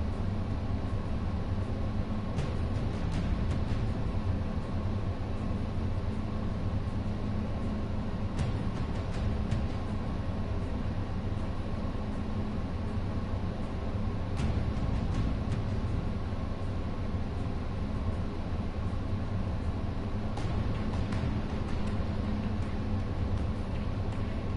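Slow, dark music plays steadily.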